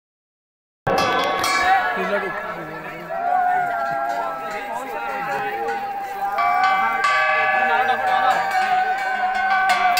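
A crowd of men talk and call out nearby outdoors.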